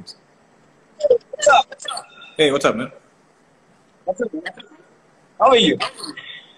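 A second man laughs and talks over an online call.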